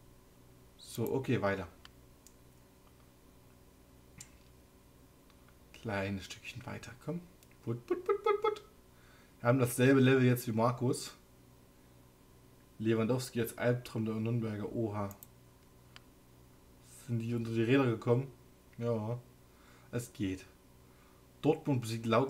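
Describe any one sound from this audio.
A young man talks calmly and closely into a microphone, in short bursts with pauses.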